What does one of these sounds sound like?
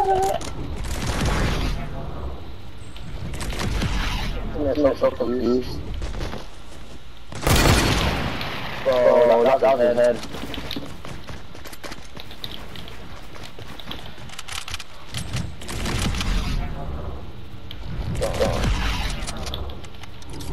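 A launch pad bounces a character upward with a whoosh.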